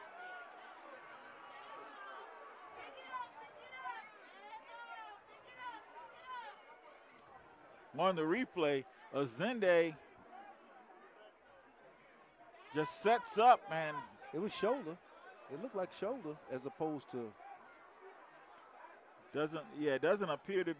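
A crowd cheers and murmurs in a large open stadium.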